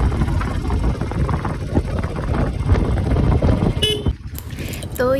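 A motorbike engine rumbles as the bike rides along.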